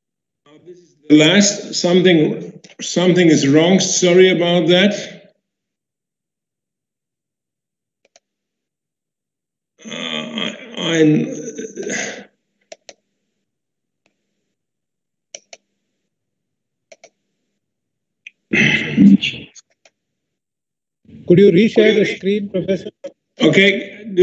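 An older man speaks calmly over an online call, in short bursts with pauses.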